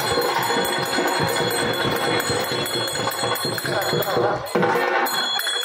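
Drums and a harmonium play loudly.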